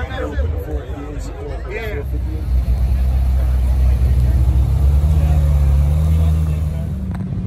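A sports car engine rumbles deeply nearby.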